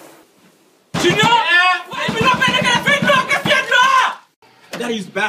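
A man pounds hard on a door.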